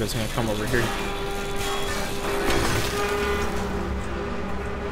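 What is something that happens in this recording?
A power cutter whines and hisses as it slices through metal.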